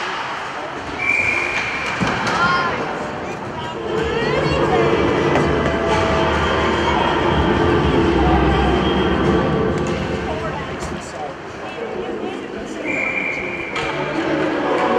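A whistle blows sharply.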